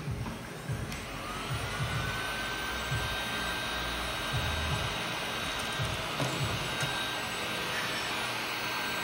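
A heat gun blows with a steady, high whir.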